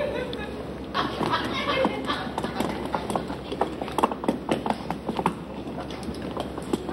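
Wooden marionette feet tap and clatter on a hard floor.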